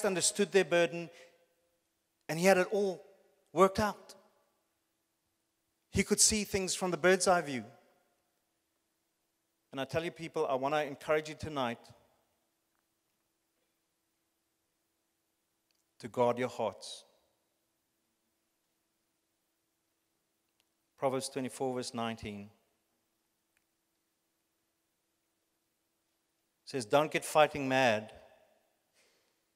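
A man speaks through a microphone in slow, spaced phrases with long pauses.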